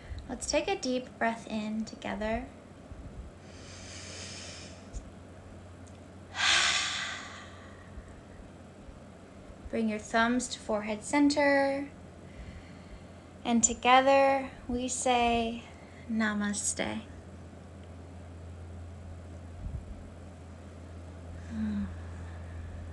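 A woman speaks calmly and slowly close to a microphone.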